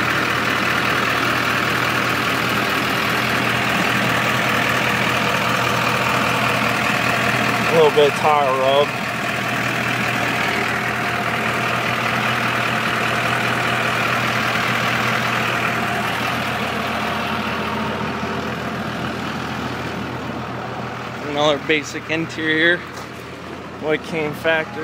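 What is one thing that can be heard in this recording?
A truck engine idles with a steady rumble.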